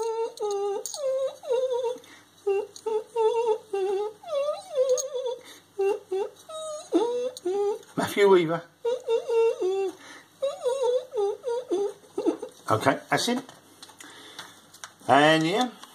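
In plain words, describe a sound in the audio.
A woman talks close by in a high, squeaky character voice, with lively rises and falls.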